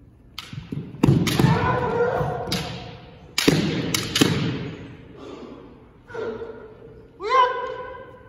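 Young men shout loud, drawn-out cries that echo through a large hall.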